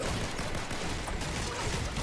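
A pickaxe strikes something with a sharp impact.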